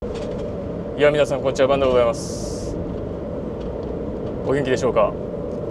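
A man speaks calmly into a clip-on microphone.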